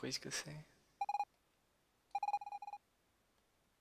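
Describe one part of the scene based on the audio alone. Rapid high electronic blips chatter as game dialogue text types out.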